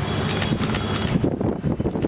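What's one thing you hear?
High heels click on wet paving stones.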